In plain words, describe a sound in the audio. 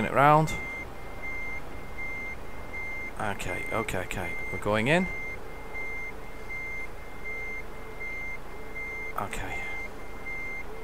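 A truck engine rumbles low.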